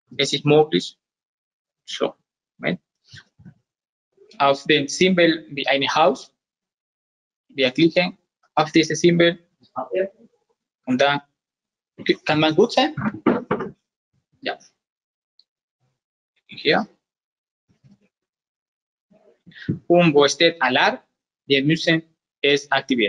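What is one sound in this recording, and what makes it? A man talks calmly and explains, close by.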